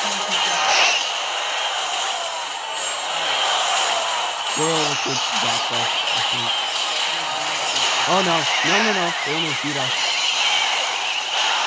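Video game battle sound effects clash and pop.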